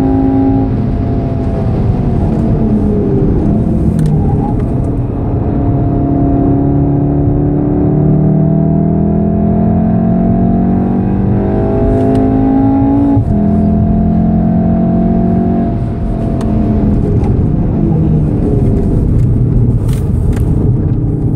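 A car engine roars loudly, rising and falling in pitch as the car speeds up and slows down.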